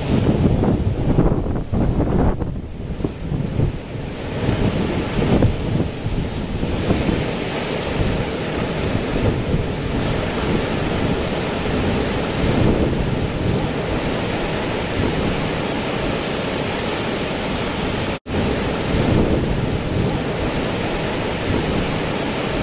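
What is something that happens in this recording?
Strong wind blows and buffets loudly outdoors.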